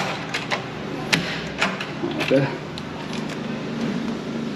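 A door lock clicks and rattles as a hand works it.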